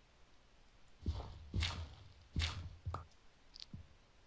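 A pickaxe chips at a block of dirt with dull, repeated knocks.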